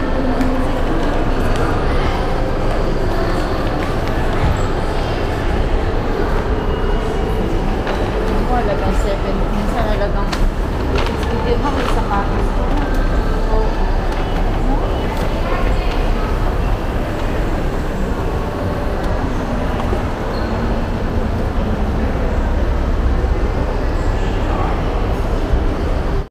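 Many people talk indistinctly in a large echoing hall.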